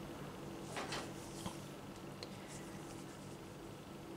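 A crochet hook scrapes softly through yarn.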